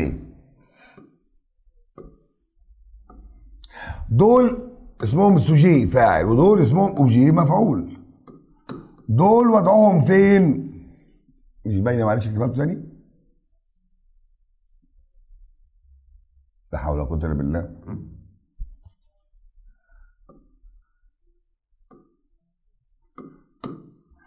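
A marker squeaks and taps on a board.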